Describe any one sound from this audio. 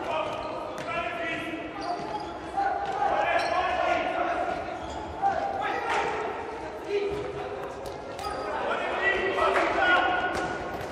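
A ball thuds as players kick it in an echoing hall.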